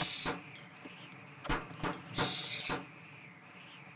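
A hammer knocks on wood.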